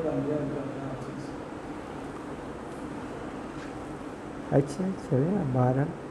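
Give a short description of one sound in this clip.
An elderly man speaks calmly through a clip-on microphone.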